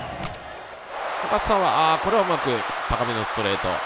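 A stadium crowd roars louder.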